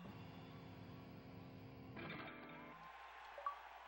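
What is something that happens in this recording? Loud electric guitar rock music plays, then stops abruptly.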